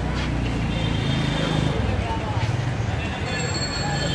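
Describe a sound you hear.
A motorbike engine idles and pulls away close by.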